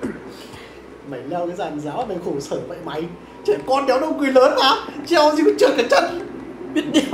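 A second young man talks and laughs close to a microphone.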